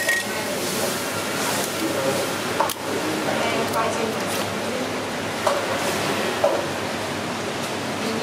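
A crab shell cracks and crunches as hands pull it apart.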